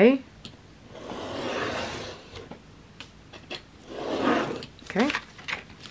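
A rotary blade slices through paper in quick strokes.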